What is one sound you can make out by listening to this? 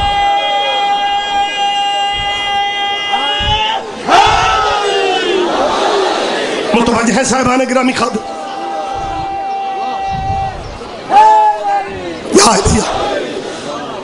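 A large crowd of men chants and shouts together.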